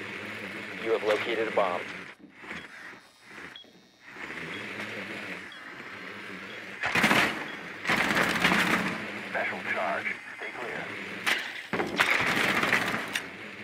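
A small remote-controlled drone whirs as it rolls across a hard floor.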